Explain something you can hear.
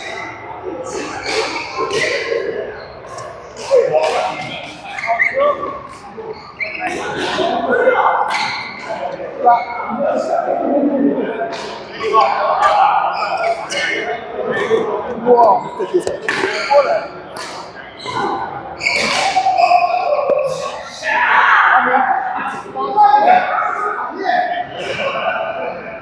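Shoes squeak on a court floor as players move.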